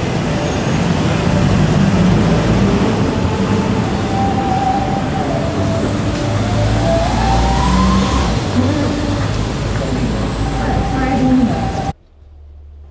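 Traffic hums steadily along a busy city street.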